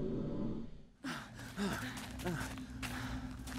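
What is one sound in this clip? Footsteps crunch on the ground outdoors.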